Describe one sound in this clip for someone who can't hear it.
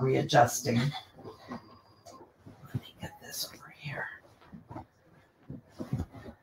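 Quilt fabric rustles as it is handled.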